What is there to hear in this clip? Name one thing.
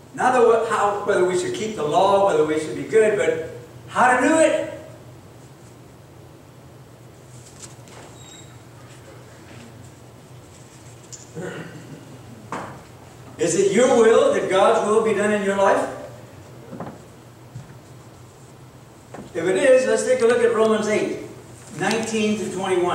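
A man speaks calmly through a microphone in a large echoing hall, pausing between phrases.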